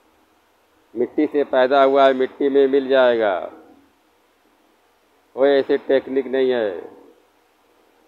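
An elderly man speaks calmly and closely into a microphone, in two short phrases.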